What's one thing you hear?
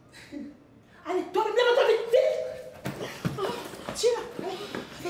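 A middle-aged woman shouts angrily close by.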